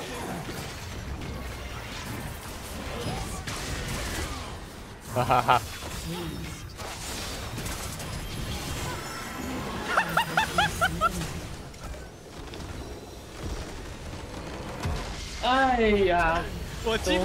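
Video game combat sounds of spells and hits play throughout.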